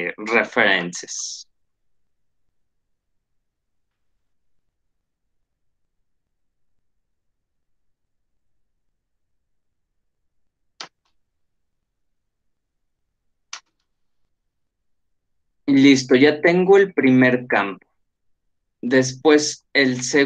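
A man speaks calmly into a microphone, heard as on an online call.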